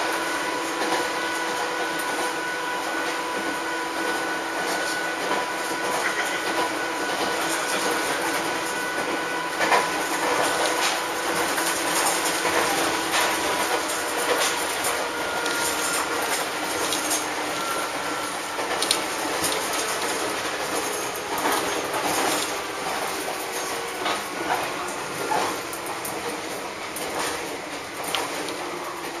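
A train rolls along the track with a steady rumble and hum.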